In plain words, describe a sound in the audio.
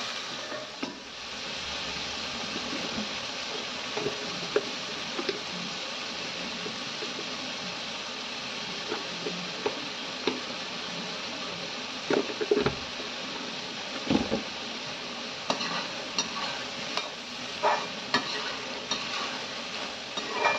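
Food sizzles and fries in hot oil.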